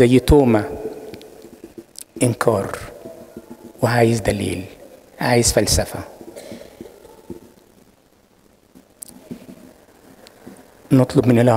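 An elderly man speaks slowly and deliberately into a microphone, in short phrases with pauses, in an echoing hall.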